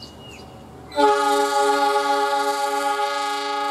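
A locomotive horn blares loudly and steadily.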